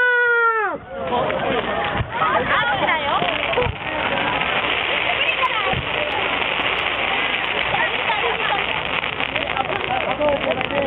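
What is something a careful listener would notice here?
A crowd of people chatters and cheers nearby.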